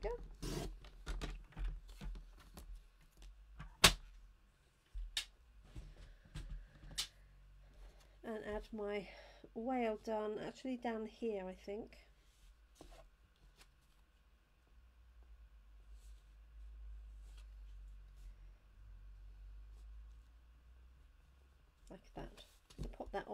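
Paper rustles and slides under hands.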